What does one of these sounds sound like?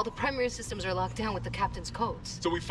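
A woman speaks tensely through a radio call.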